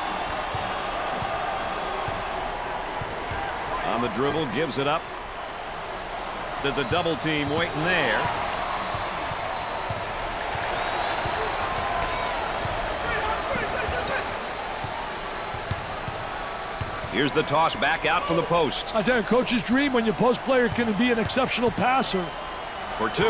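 A crowd murmurs and cheers steadily in a large echoing arena.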